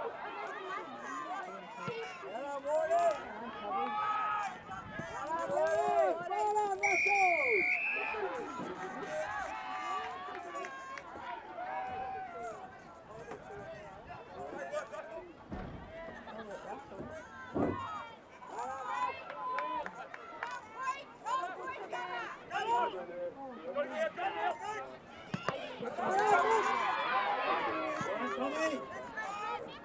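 A crowd of spectators talks and shouts close by outdoors.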